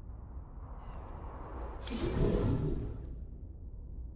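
A deep whoosh swells and fades.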